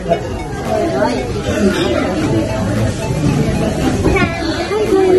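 Voices chatter in the background of a busy room.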